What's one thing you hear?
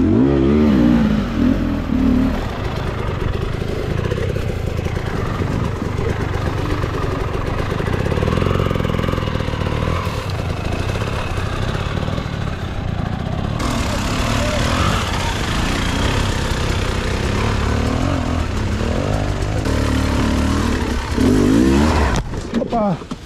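A dirt bike engine revs and roars close by.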